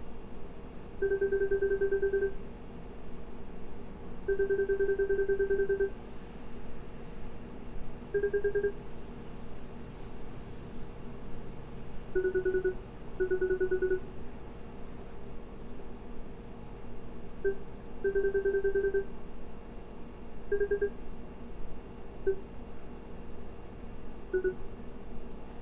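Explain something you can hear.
Rapid electronic blips chirp in short bursts as dialogue text types out.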